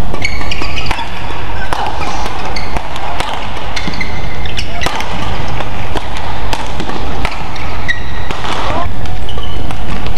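Rackets smack a shuttlecock back and forth in a fast rally.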